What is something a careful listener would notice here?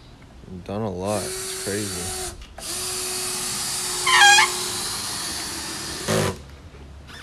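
A cordless drill whirs in short bursts as it drives screws into wood.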